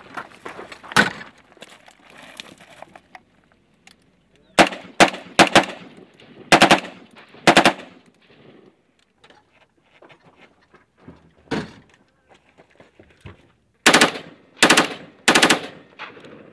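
Rifle shots crack loudly one after another outdoors.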